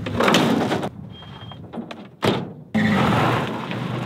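A truck door slams shut.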